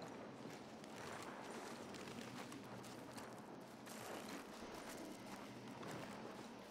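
Footsteps crunch slowly on a dirt floor.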